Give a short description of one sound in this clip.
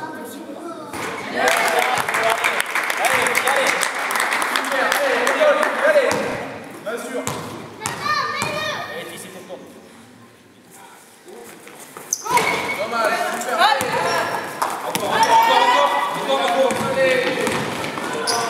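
A crowd of spectators cheers and shouts in a large echoing hall.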